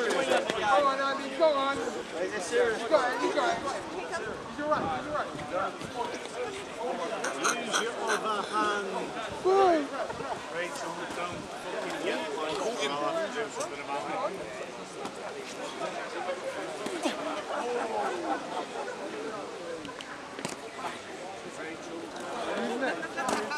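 A crowd of young men chatter and shout outdoors.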